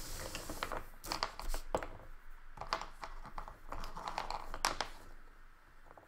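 A crayon scratches rapidly across paper.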